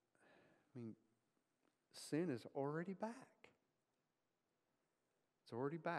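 A middle-aged man speaks calmly to an audience.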